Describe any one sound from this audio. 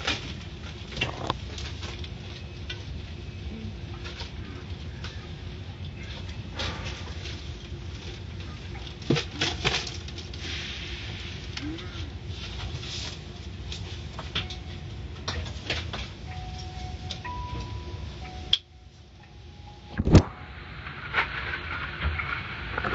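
Car wash brushes slap and thump against a car.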